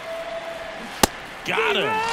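A baseball smacks into a catcher's glove.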